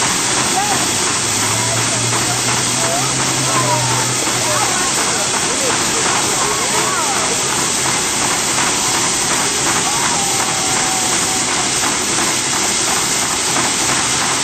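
An old steam engine hisses and rumbles steadily.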